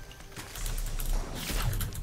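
Video game gunshots crack sharply.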